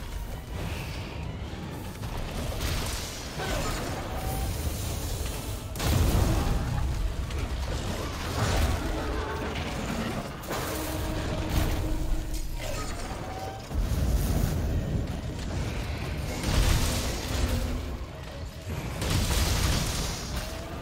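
A huge beast growls and roars.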